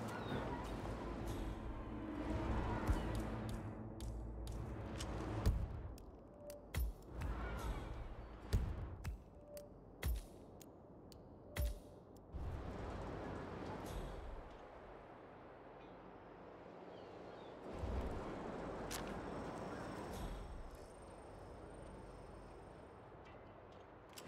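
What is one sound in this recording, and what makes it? Footsteps shuffle and tap on clay roof tiles.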